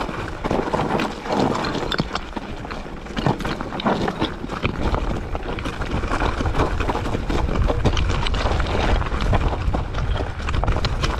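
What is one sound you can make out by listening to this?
Bicycle tyres crunch and rattle over loose rocks.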